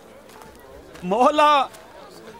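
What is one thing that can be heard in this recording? A young man calls out loudly.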